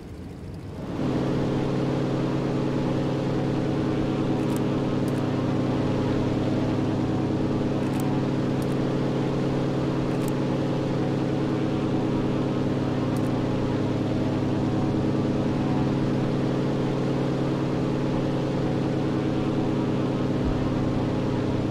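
A propeller plane's engine drones loudly and steadily from close by.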